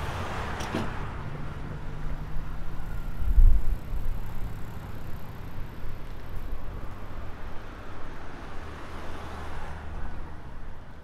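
A truck rumbles past nearby on a road.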